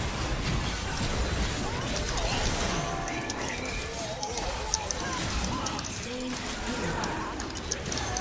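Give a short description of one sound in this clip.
Game spell effects whoosh and crackle in a fast battle.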